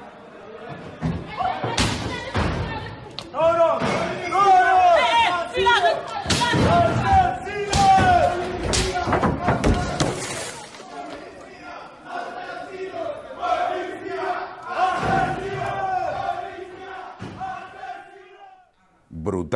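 A crowd of young men shouts and chants outdoors.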